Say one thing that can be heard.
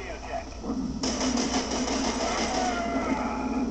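An explosion booms from a loudspeaker.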